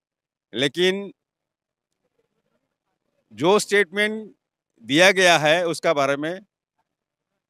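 A middle-aged man speaks into a microphone up close, with animation, in short bursts.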